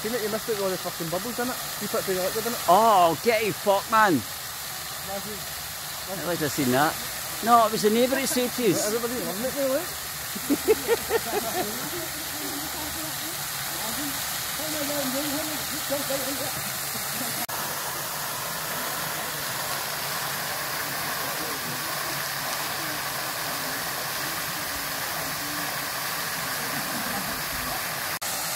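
Water gushes and hisses steadily from a burst pipe outdoors.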